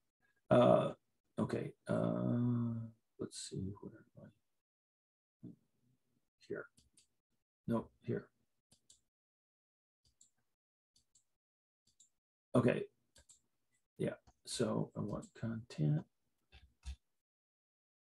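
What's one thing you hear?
An older man speaks calmly through an online call, in short bursts with pauses.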